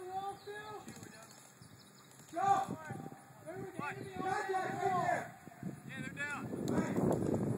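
Men shout to one another outdoors.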